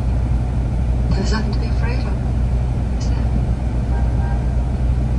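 A woman speaks softly, heard through a loudspeaker in a room.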